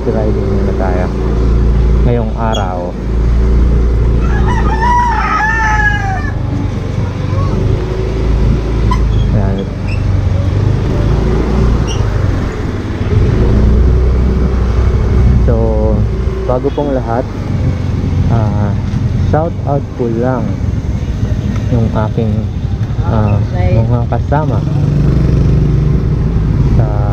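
A motorbike engine hums steadily at low speed.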